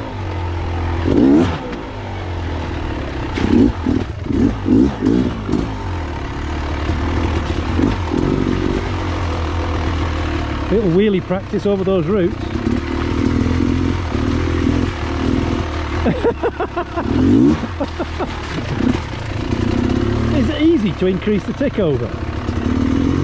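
A dirt bike engine revs and sputters up close, rising and falling as the throttle opens and closes.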